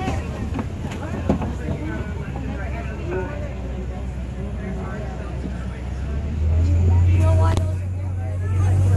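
A vehicle engine rumbles low and steady, growing louder toward the end.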